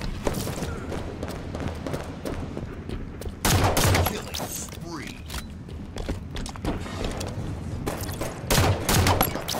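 A sci-fi pistol fires quick, sharp shots in bursts.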